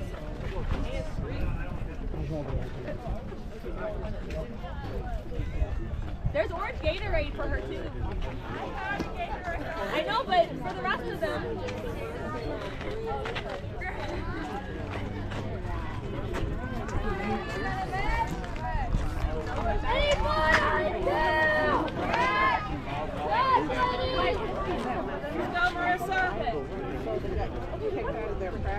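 Players and spectators call out and cheer outdoors, some distance away.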